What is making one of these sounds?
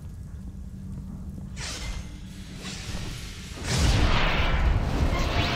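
Footsteps tap on a stone floor in an echoing hall.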